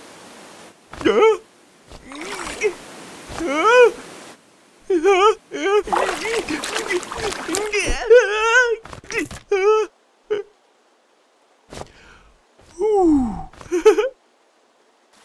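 A cartoon man screams and shouts in alarm.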